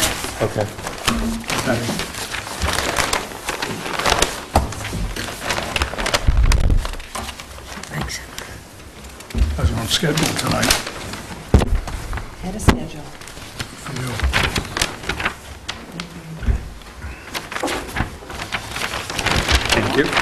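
Papers rustle and shuffle.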